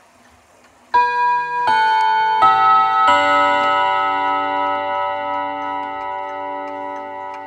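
Clock chime rods ring out in a sequence of bright, resonant tones that slowly fade.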